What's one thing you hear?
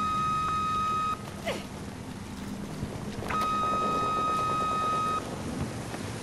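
A steady high electronic lock-on tone sounds.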